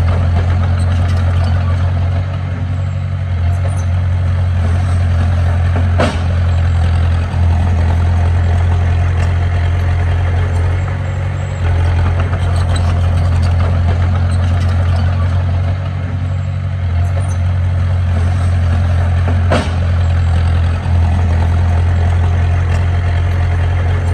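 A bulldozer's diesel engine rumbles steadily close by.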